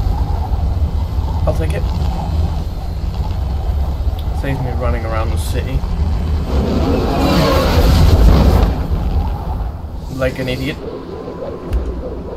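A jet engine roars with a deep, steady rumble that swells louder for a moment.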